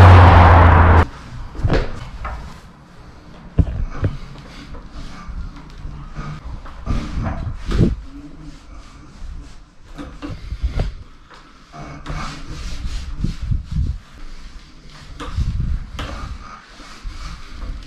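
An electric unicycle's wheel rolls and thumps on a hard floor.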